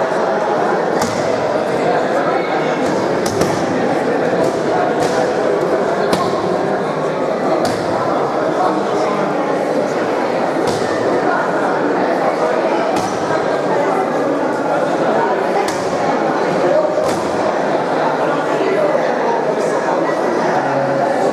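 A crowd chatters throughout a large echoing hall.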